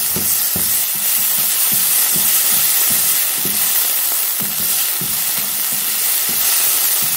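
A spatula stirs and scrapes against a pan.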